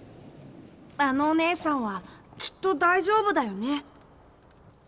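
A young boy speaks brightly with a high voice.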